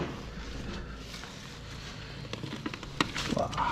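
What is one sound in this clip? Old wooden shutters creak and rattle as they are pushed open.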